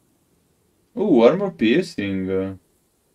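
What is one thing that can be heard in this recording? A young man speaks briefly and with animation, close to a microphone.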